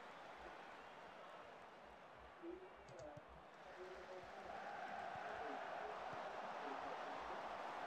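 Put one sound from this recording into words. A large stadium crowd roars and cheers steadily, swelling louder near the end.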